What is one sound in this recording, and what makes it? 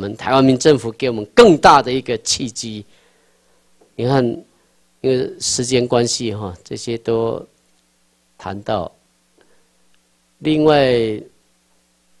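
A man lectures through a microphone, speaking in bursts with pauses.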